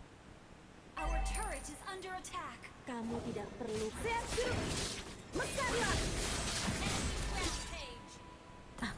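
Game sound effects of spells and blasts burst out rapidly.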